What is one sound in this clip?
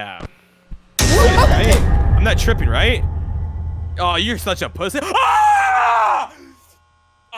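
A young man screams loudly into a microphone.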